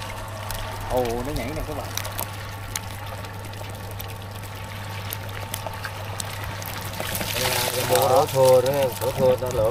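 Fish slither and patter as they are poured into a plastic basin.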